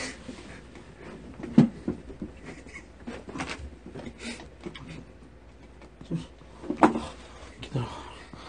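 Shoes knock and scrape against a cardboard box.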